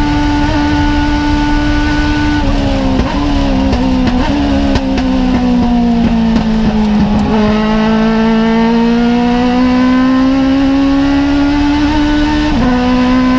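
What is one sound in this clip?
A race car engine roars from inside the cockpit, its revs dropping into a corner and then climbing again as it accelerates.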